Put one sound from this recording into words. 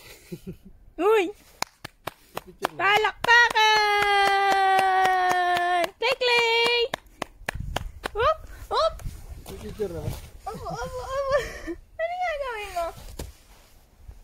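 A small child squeals and babbles nearby.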